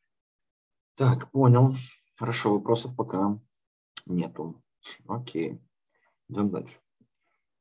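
A young man speaks calmly through an online call microphone.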